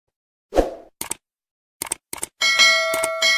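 A mouse button clicks sharply.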